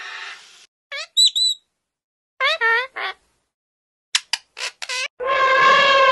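A parrot squawks sharply.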